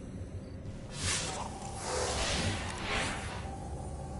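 A shimmering burst of energy crackles and hisses.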